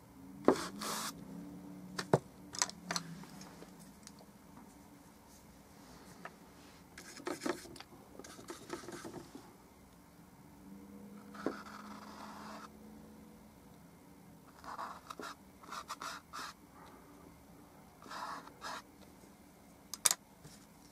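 A paintbrush brushes softly across a canvas.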